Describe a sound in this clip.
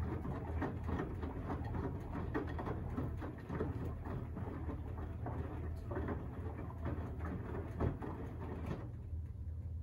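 Water and laundry slosh inside a washing machine drum.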